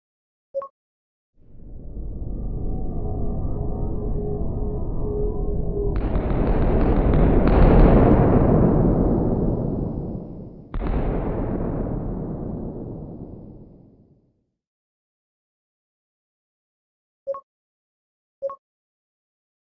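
Soft electronic clicks tap a few times.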